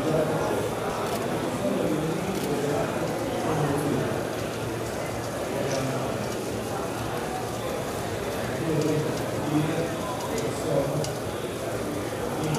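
A spatula scrapes against a metal pot.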